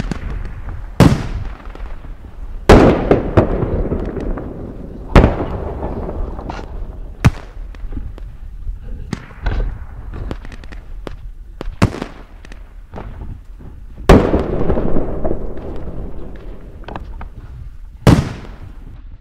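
An airsoft pistol fires sharp, snapping shots, one at a time.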